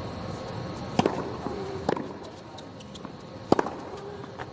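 A tennis ball is struck with sharp pops of a racket.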